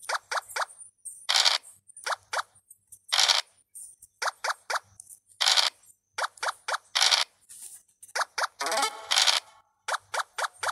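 Dice rattle as they roll in a game.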